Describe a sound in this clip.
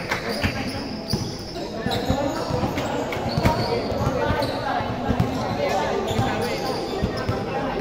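A basketball bounces on a hard court floor.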